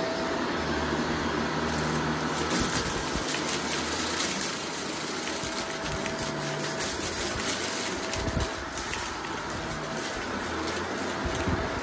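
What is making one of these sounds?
Confetti rattles and clicks as a vacuum cleaner sucks it up.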